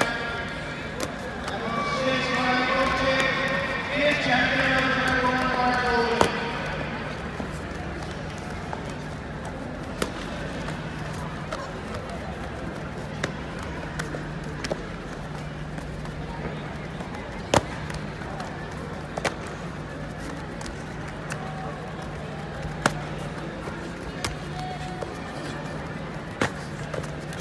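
Blows and bare feet land with sharp slaps and thuds.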